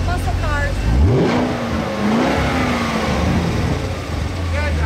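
A sports car engine revs up as the car pulls away.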